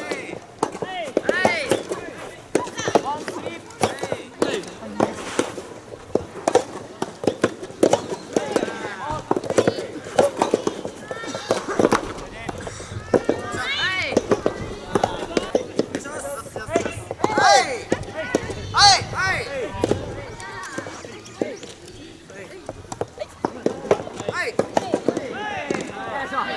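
Rackets strike a soft rubber ball back and forth.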